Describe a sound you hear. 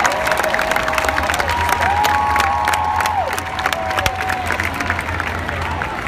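People in a crowd clap their hands.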